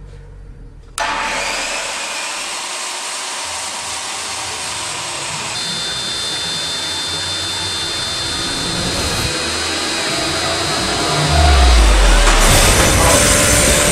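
A table saw blade spins with a loud, steady whir.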